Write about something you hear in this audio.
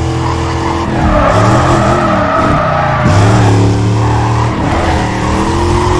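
Car tyres screech on asphalt in a drift.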